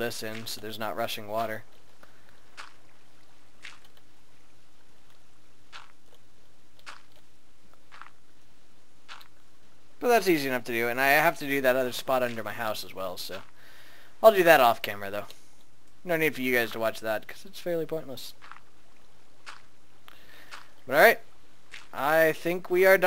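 Sand crunches in short bursts as blocks are dug out one after another.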